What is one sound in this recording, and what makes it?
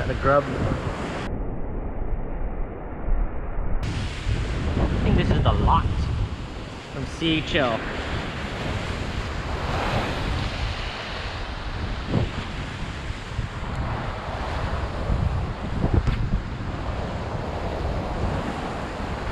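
Wind blows across an open shore.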